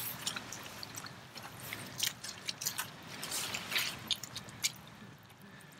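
Rubber boots squelch through wet mud with each step.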